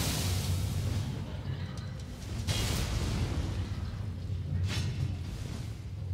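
A sword slashes and strikes with heavy impacts.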